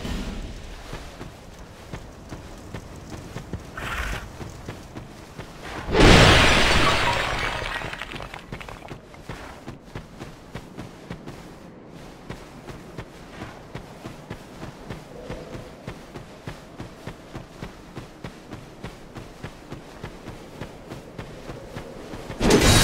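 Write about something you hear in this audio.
Armoured footsteps thud rhythmically on the ground.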